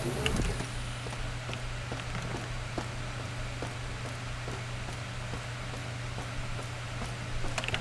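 Footsteps clank on a metal floor at an even pace.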